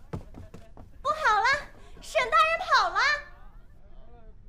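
A young woman speaks with alarm.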